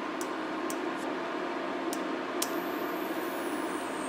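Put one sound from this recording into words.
Water simmers and crackles softly in a pot.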